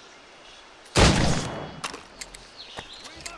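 A pistol fires with a loud bang.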